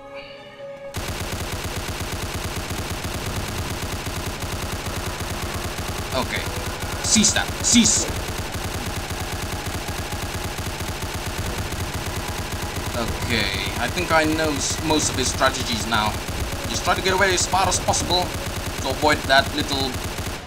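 A rapid-fire gun shoots in a fast, steady stream of shots.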